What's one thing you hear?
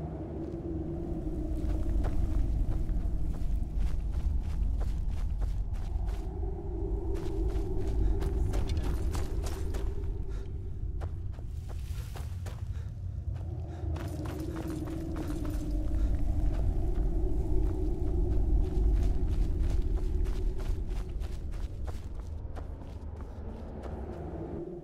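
Footsteps crunch on loose gravel.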